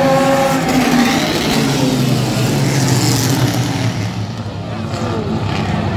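Several race car engines roar loudly as the cars speed past.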